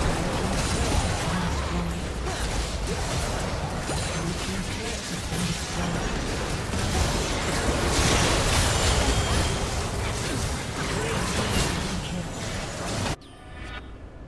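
Magic spells blast and crackle in a chaotic fight.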